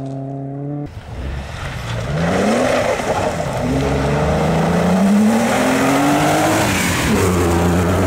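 A rally car engine revs hard and roars closer, rising and falling in pitch through the gears.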